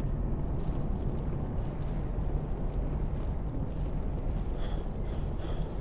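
Footsteps run quickly over gravel.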